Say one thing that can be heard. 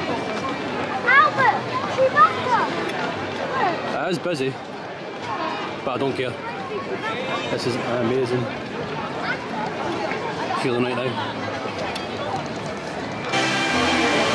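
A crowd of men, women and children chatters and calls out nearby, outdoors.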